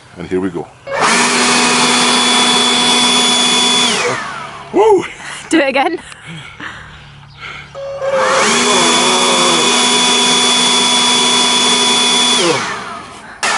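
A leaf blower roars with a steady high whine.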